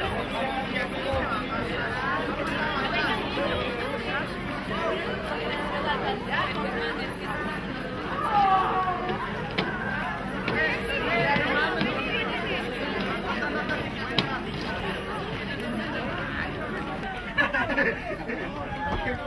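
A crowd of children and teenagers chatter and call out close by.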